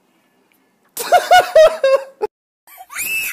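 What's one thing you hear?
A young boy laughs loudly close by.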